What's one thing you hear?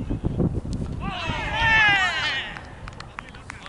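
A man shouts loudly from across the field.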